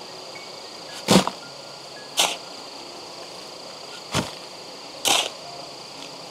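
A shovel scrapes and splashes through shallow water and gravel.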